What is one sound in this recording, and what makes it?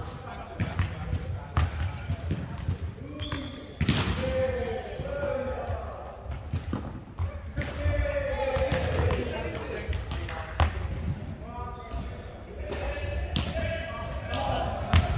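A volleyball is struck with sharp slaps, echoing in a large hall.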